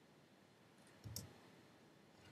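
A pickaxe knocks against stone with a dull thud.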